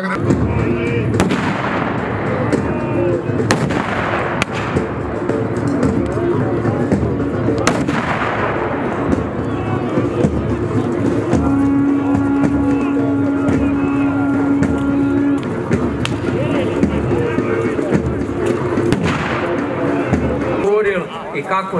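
A crowd of men shouts and clamours outdoors.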